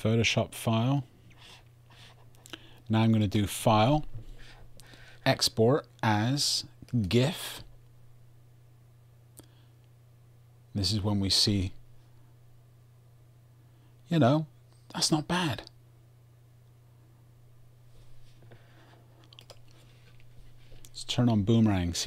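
A man talks calmly and closely into a microphone, in short bursts with pauses.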